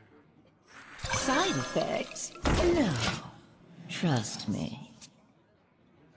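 A magical whoosh and thud sound as a card is played onto the board.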